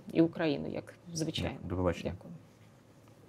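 A woman speaks calmly and warmly, close to a microphone.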